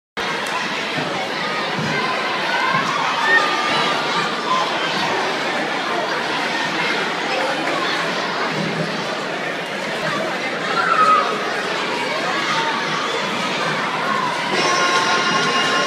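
A large crowd of young people cheers and shouts in a large echoing hall.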